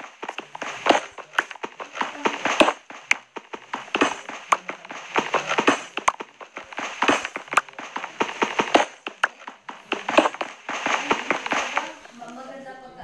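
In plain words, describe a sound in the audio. A pickaxe chips at stone and gravel.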